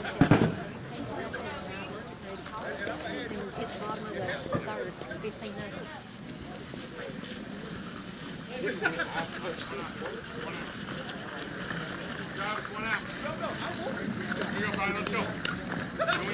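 Men and women call out and talk outdoors on an open field.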